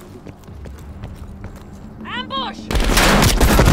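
Footsteps crunch softly on a stone path.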